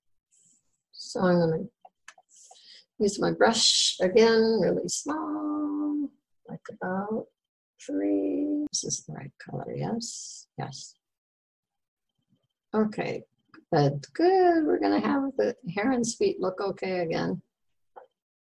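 An elderly woman talks calmly through a microphone, as on an online call.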